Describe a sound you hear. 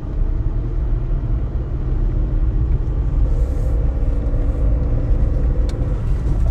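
Tyres crunch over a dirt road.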